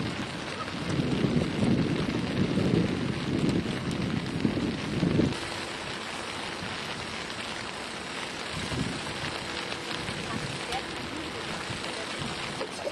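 Footsteps scuff on wet pavement.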